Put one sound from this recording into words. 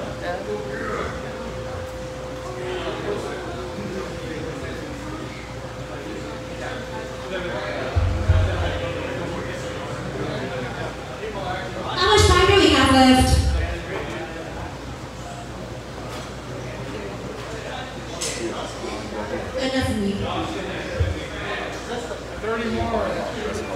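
A live band's drummer plays a drum kit.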